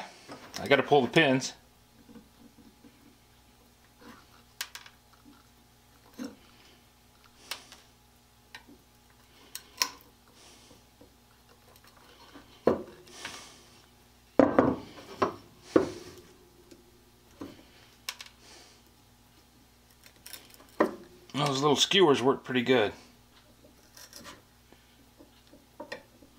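A metal blade scrapes and clicks against a small metal part.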